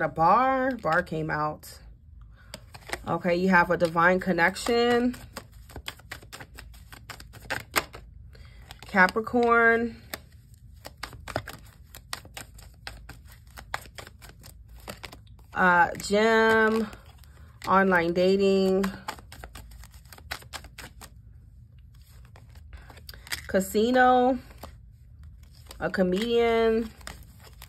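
Playing cards are laid down one on another with soft slaps and taps.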